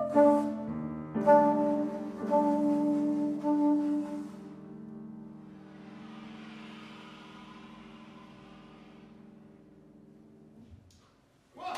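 A soprano saxophone plays a melody and holds its final note.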